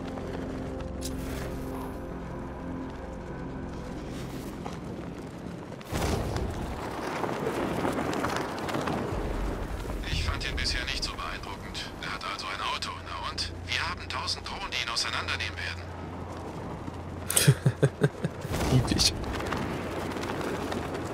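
Wind rushes loudly past a gliding figure.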